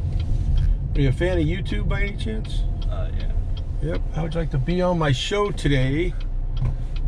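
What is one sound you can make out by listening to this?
A middle-aged man talks nearby in a lively voice.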